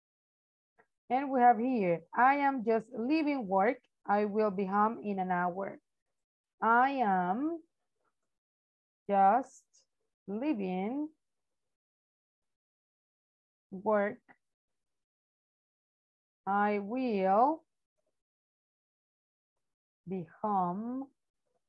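A woman speaks calmly and clearly over an online call, in short phrases with pauses.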